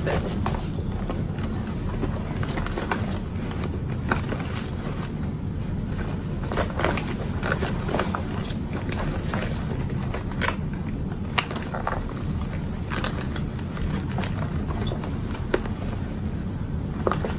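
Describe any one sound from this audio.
Fabric rustles and crinkles as hands handle it.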